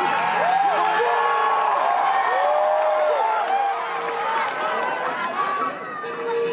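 A group of men shout and whoop together.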